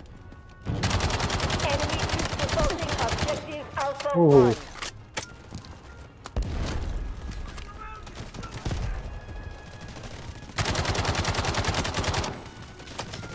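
A rifle fires rapid automatic bursts close by.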